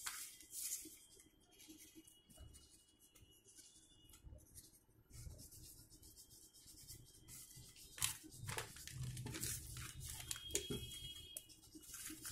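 Paper rustles and crinkles as it is folded by hand.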